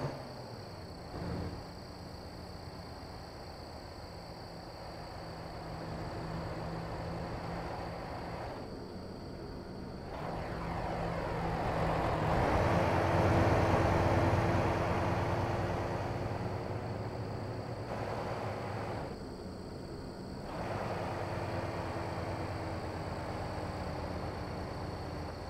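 A truck engine rumbles steadily and rises as it pulls away.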